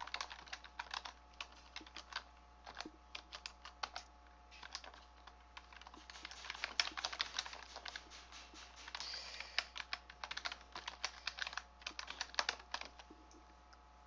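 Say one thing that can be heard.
Computer keys click in quick, uneven bursts of typing.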